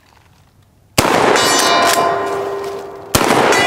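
A steel target rings after being hit.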